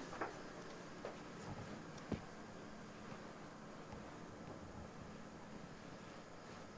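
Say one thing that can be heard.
Cushions thump and rustle softly as they are moved.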